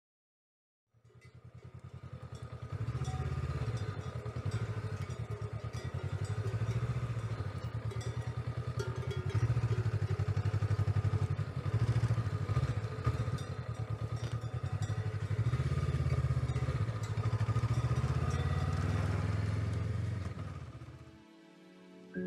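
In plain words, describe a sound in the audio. A motorcycle engine rumbles low and steady as it rides slowly.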